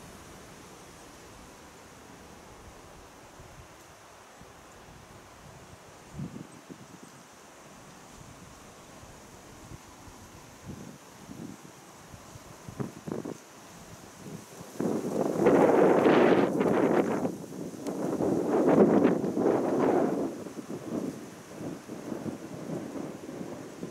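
Wind rustles through leafy trees outdoors, rising in gusts.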